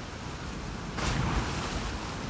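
A body splashes into water.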